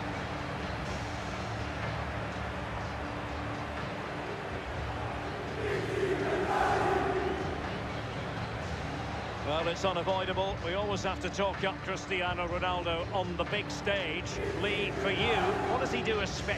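A large crowd roars steadily in a big echoing stadium.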